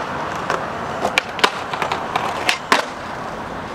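A skateboard clacks and grinds along a ledge.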